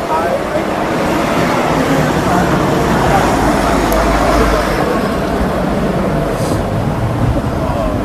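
A bus drives past with a low rumble.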